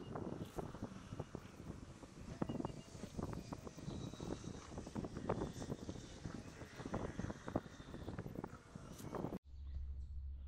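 Water laps and splashes gently against a small boat.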